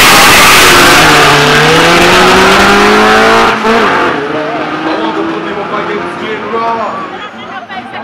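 A car engine roars loudly as a car launches and races away.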